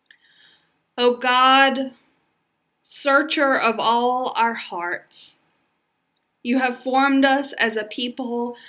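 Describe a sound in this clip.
A woman speaks calmly and slowly, close to a microphone, as on an online call.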